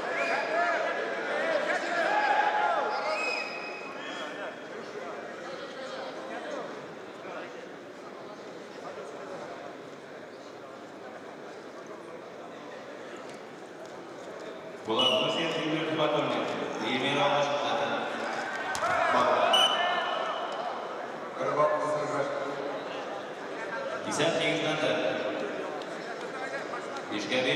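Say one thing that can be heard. A crowd murmurs and calls out in a large echoing hall.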